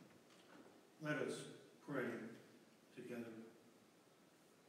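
An elderly man speaks calmly in a room that echoes.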